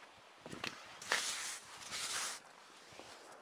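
A hand brushes snow off a car window with a soft swishing scrape.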